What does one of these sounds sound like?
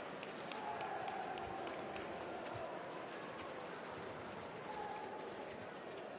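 A crowd cheers and roars loudly in a large echoing arena.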